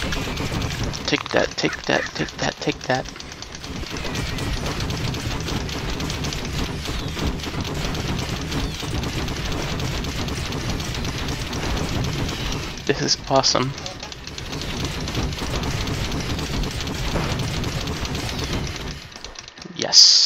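Heavy machine guns fire in rapid, rattling bursts.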